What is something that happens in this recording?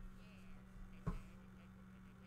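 A flashlight switches on with a sharp click.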